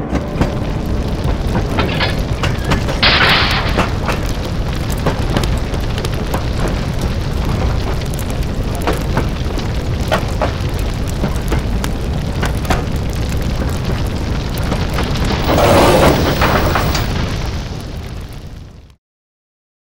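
Freight cars rumble and clatter over rail joints.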